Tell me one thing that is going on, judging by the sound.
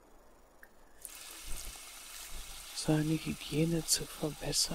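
Water runs from a tap into a basin.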